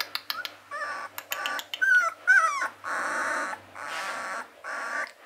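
A puppy whimpers and squeals close by in high, wavering cries.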